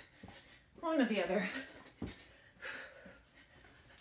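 A woman speaks breathlessly, with effort.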